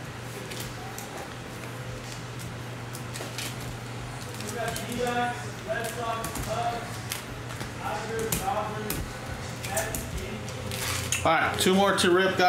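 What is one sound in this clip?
Plastic card cases click and clack as they are stacked.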